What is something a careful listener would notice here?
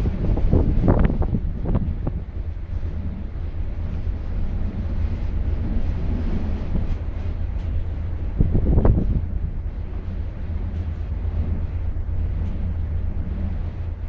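Wind blows hard across an open deck outdoors.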